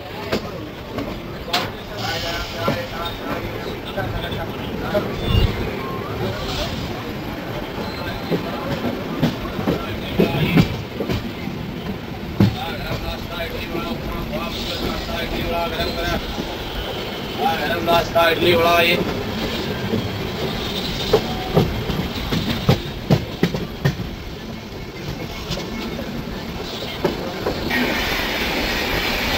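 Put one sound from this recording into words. Wheels knock rhythmically over rail joints.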